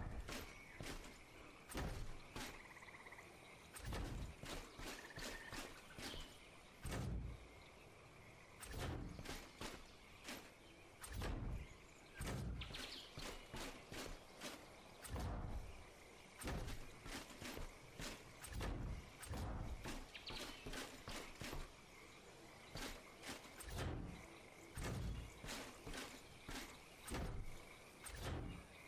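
Heavy metal panels clank into place again and again.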